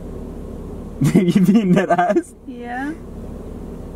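A young man laughs loudly close by.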